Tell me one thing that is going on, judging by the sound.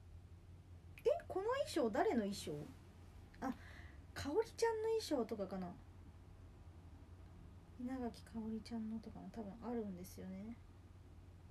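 A young woman speaks softly close to a microphone.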